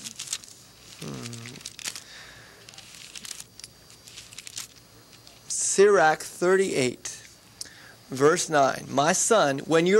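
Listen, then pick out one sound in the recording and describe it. A middle-aged man reads aloud in a measured, chanting voice, close to a microphone.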